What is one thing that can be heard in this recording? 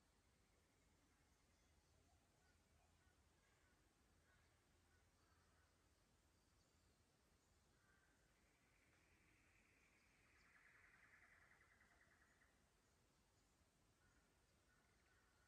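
A shallow creek trickles softly over stones.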